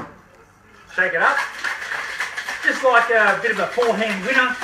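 Ice rattles in a cocktail shaker.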